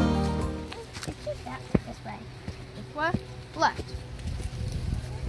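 Dry corn stalks rustle and crackle as children brush past.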